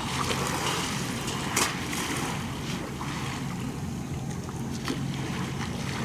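Water laps gently against the shore.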